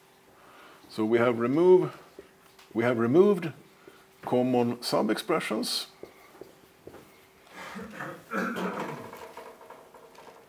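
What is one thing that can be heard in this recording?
A man speaks calmly and with emphasis.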